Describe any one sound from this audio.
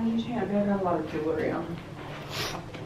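A young woman speaks casually, close by.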